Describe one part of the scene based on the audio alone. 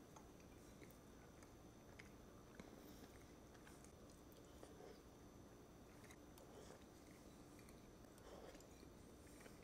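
A man chews food quietly.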